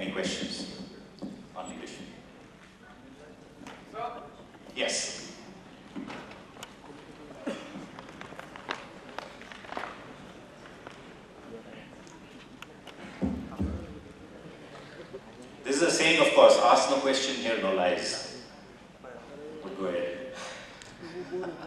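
An elderly man speaks into a microphone through loudspeakers in a large echoing hall.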